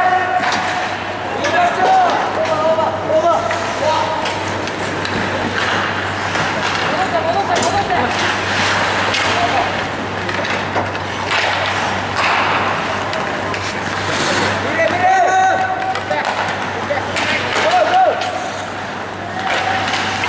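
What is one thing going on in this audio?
Hockey sticks click and slap against a puck.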